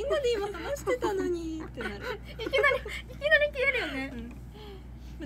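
Young women giggle close by.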